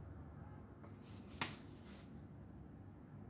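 A sheet of paper rustles as it is shifted.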